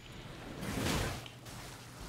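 A blade slashes and strikes a creature.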